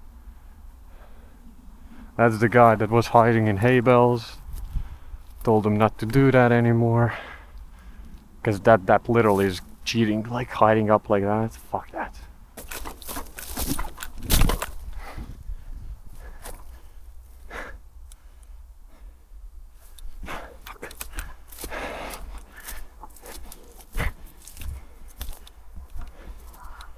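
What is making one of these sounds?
Footsteps crunch through dry leaves on a forest floor.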